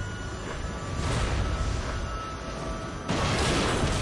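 A helicopter explodes with a loud blast.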